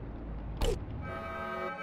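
A soft electronic chime rings.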